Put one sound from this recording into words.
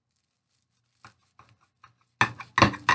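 A knife cuts through toasted bread on a plate.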